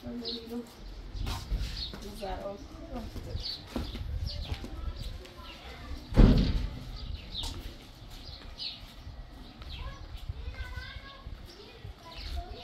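A woman's footsteps scuff on concrete.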